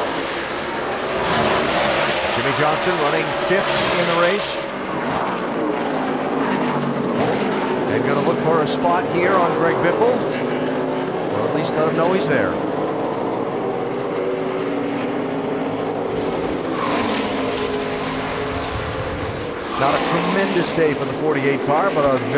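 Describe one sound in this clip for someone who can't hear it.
Engines whine up and down in pitch as the cars shift gears through the turns.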